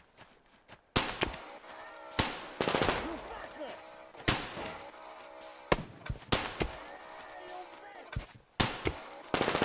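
Gunshots and explosions boom in sharp bursts.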